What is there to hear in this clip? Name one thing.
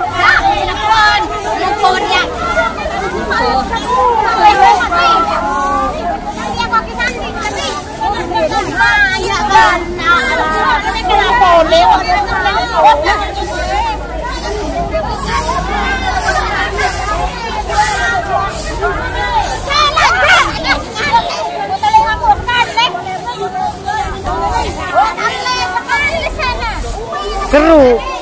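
Many women chatter and call out close by.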